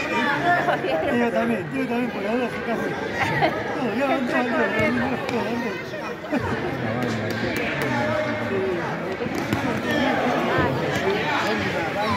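A ball thuds as it is kicked on a hard floor.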